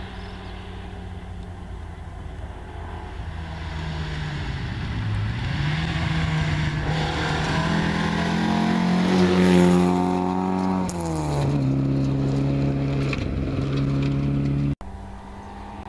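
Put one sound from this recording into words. A rally car engine revs hard as the car approaches and races past.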